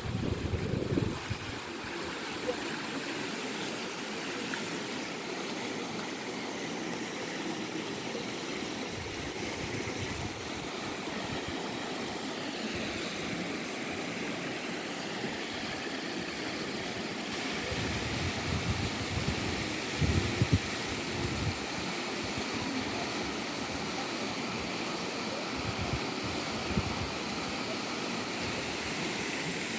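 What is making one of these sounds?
Water rushes steadily over a small weir.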